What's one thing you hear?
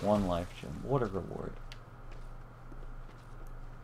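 Footsteps run over leaf-covered ground.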